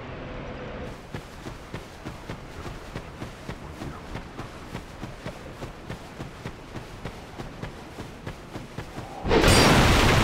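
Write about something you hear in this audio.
Footsteps patter quickly on soft ground.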